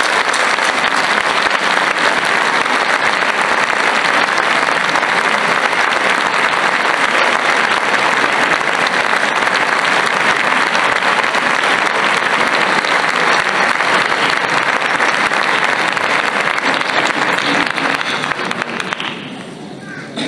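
A large mixed choir of men and women sings loudly in an echoing hall.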